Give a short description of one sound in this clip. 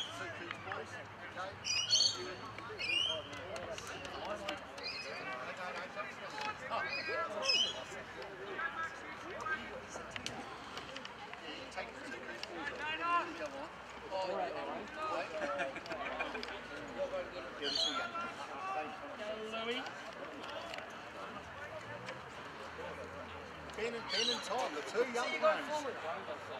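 Adult spectators talk and call out close by, outdoors.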